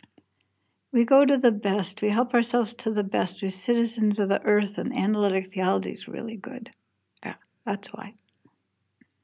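An older woman speaks calmly and close to a microphone.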